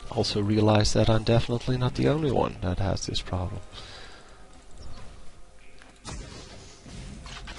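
Magic spells crackle and burst in a fight.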